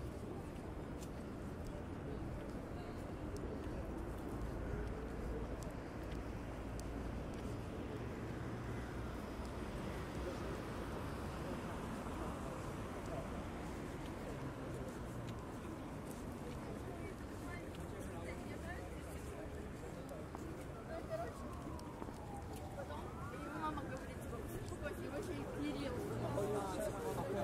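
Footsteps walk along the street.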